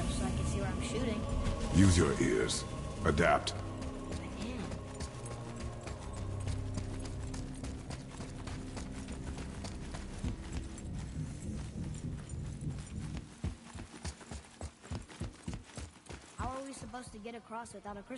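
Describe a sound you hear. Heavy footsteps run quickly across stone.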